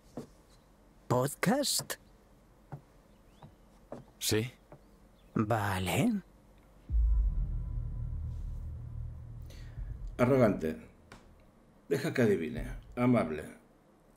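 A second young man answers calmly.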